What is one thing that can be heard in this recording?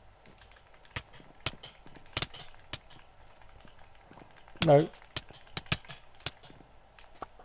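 Short, sharp game hit sounds click several times.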